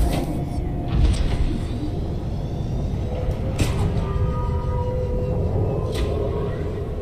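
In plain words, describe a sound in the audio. Metal clanks sharply a few times.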